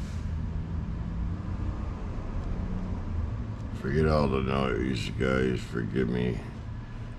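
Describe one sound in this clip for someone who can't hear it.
A small electric motor hums steadily as a rod turns.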